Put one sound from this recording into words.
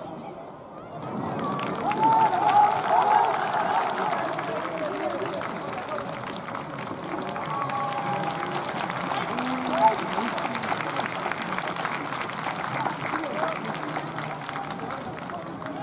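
A crowd cheers and chatters in a large open stadium.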